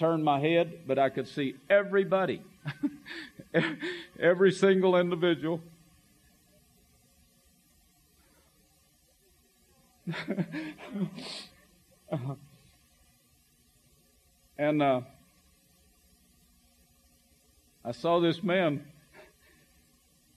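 An elderly man speaks calmly into a microphone, pausing often.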